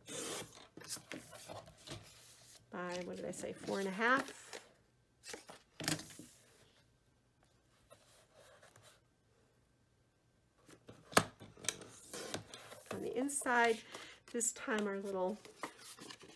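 Paper rustles and slides.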